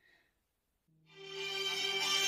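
A phone rings.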